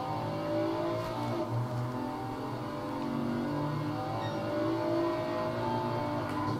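A racing car engine roars steadily from a game, rising and falling in pitch.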